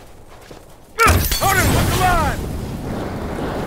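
Flames burst up with a whoosh and roar.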